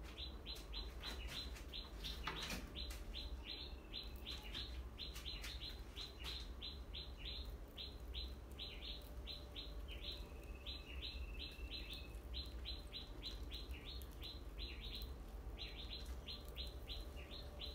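Small mice scratch and scurry on a wire mesh.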